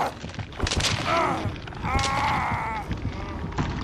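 A monstrous creature shrieks loudly.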